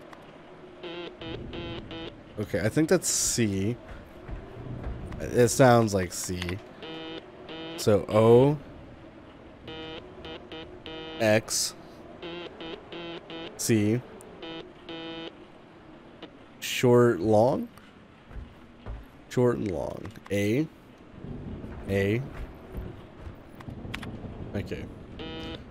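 Short electronic beeps tap out a rhythmic code.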